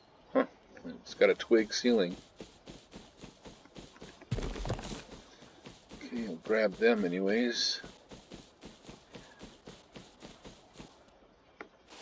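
Footsteps swish through grass at a steady walking pace.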